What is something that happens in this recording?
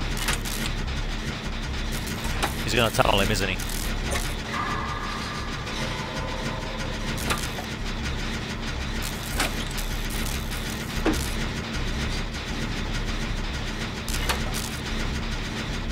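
A generator engine rattles and clanks steadily as it is worked on.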